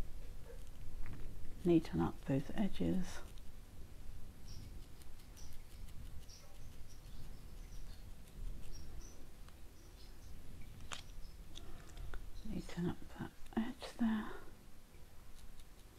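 Small scissors snip softly at fibres close by.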